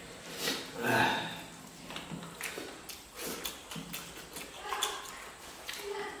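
A man eats noisily, smacking his lips.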